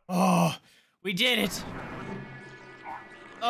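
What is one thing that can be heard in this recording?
An orc growls and snarls loudly.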